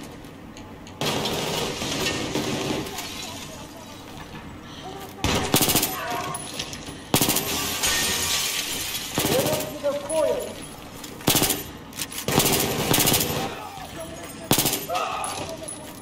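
Gunfire bursts out in loud, rapid volleys with echoing bangs.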